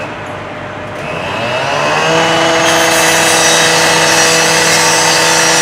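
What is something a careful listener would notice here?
A power saw engine revs up and screams as it grinds through metal.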